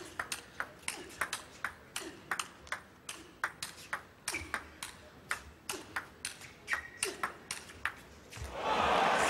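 A table tennis ball clicks rapidly back and forth off paddles and the table.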